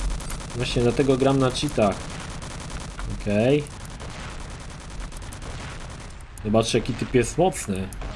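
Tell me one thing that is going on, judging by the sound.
Rockets fire with loud blasts.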